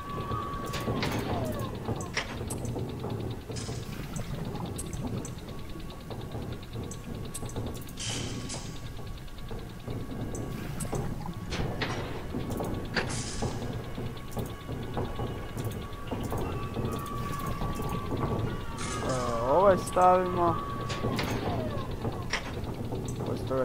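Metal pipe tiles clank softly into place, again and again.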